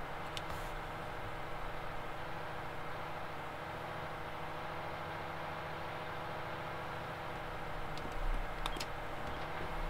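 Tyres roll over gravel.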